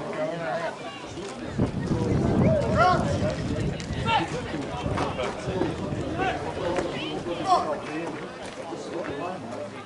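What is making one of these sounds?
Men shout and call out on a playing field outdoors.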